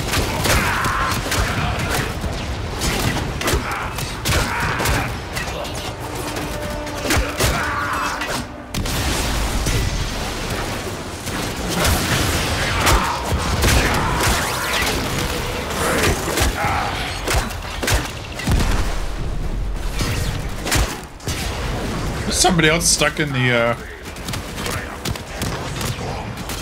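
Gunfire and energy blasts crackle in rapid bursts throughout.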